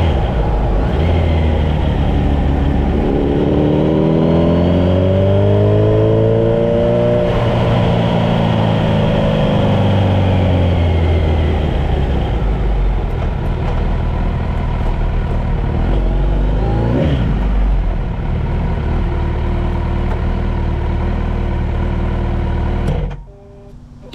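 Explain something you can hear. A car engine rumbles from inside the car, its pitch rising and falling, then cuts off.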